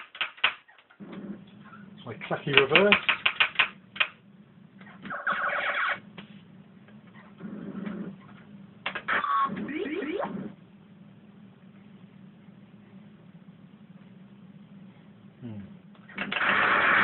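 A low electronic hum drones from an arcade game.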